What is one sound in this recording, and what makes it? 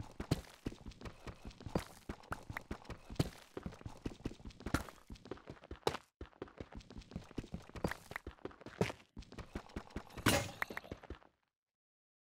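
A pickaxe chips rapidly at stone, clicking in quick bursts.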